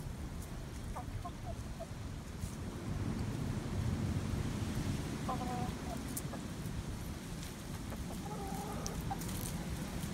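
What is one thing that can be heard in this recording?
A hen clucks softly nearby.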